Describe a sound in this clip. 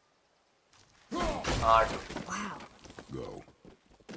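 An axe whooshes through the air and thuds into wood.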